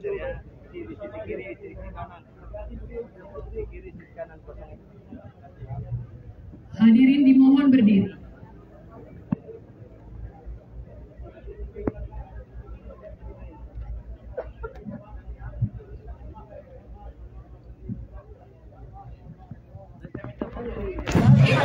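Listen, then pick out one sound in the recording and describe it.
A large crowd murmurs and chatters close by.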